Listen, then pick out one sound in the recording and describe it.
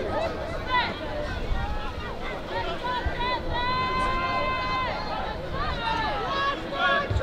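Several young men shout and call out to each other outdoors.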